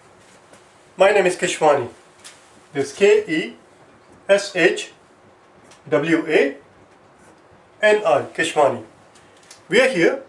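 A man speaks calmly and clearly into a nearby microphone, in short bursts.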